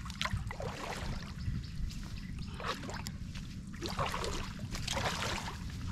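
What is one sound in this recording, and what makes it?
Water splashes as a man wades through it.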